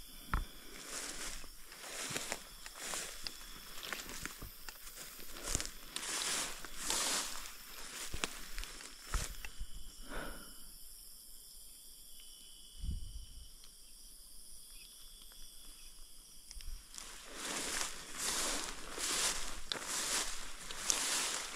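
Footsteps swish and rustle through tall grass.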